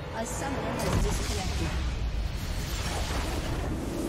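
A triumphant game fanfare swells up.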